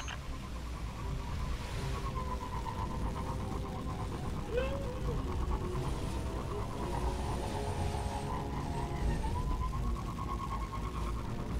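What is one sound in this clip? A hovering bike engine hums and whines steadily as it speeds along.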